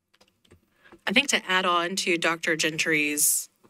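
A woman speaks clearly through a microphone.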